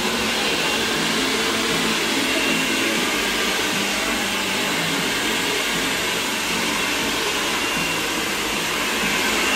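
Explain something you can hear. A hair dryer blows steadily.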